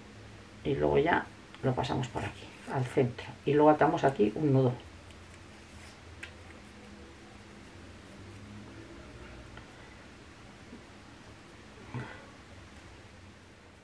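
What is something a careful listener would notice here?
A satin ribbon rustles softly as fingers twist and loop it.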